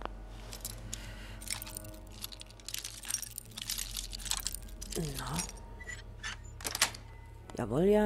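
A lock pick scrapes and clicks inside a metal lock.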